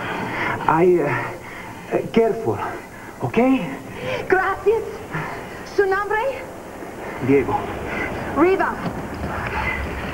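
A man speaks with emotion close by.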